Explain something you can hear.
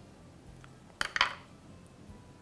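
Scissors clatter as they are set down on a table.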